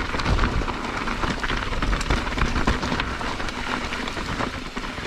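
Bicycle tyres crunch and rattle over loose rocks.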